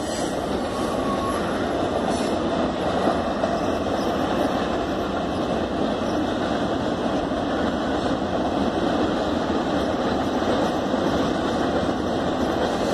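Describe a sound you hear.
A long freight train rumbles steadily across a bridge in the distance.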